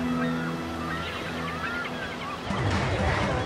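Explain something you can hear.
Waves wash onto a pebble beach.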